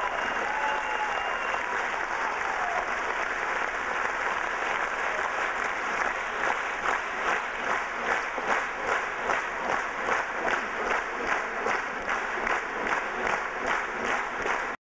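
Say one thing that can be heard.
A folk band plays lively music in a hall.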